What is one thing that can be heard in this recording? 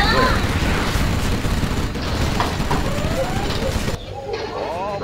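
Explosions boom and crackle in a game battle.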